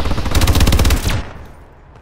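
An explosion booms with a deep roar.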